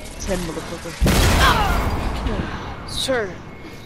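A jet of fire roars in a loud burst.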